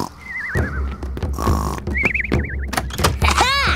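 A cartoon character snores with a whistling sound.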